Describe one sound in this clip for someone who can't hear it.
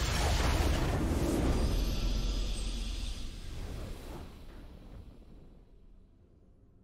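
A triumphant game fanfare booms and then fades away.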